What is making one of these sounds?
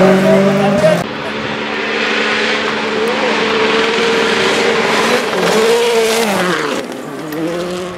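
A second rally car engine revs and roars as the car approaches and jumps.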